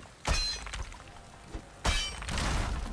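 An axe chops into wood with sharp thuds.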